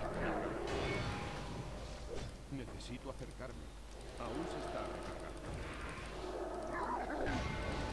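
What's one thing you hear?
Magic spells whoosh and chime.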